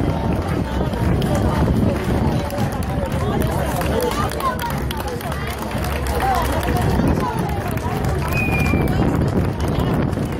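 A large outdoor crowd chatters all around.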